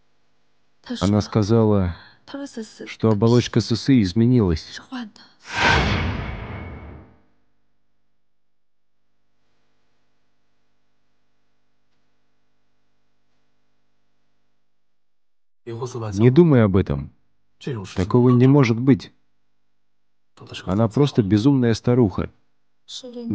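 A man speaks quietly and tensely.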